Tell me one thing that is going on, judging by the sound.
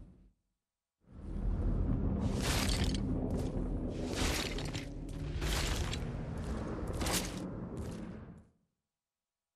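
Clothing scrapes and rubs against rock in a tight gap.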